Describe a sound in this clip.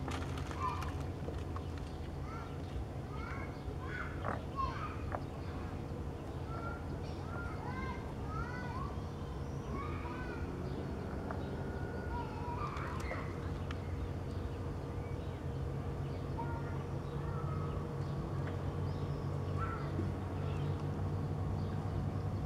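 Water laps gently against the shore.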